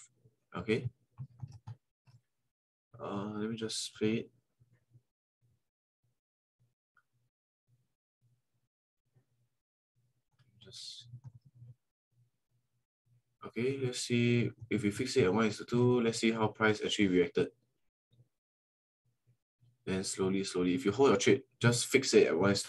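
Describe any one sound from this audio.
A young man talks calmly into a close microphone, with pauses.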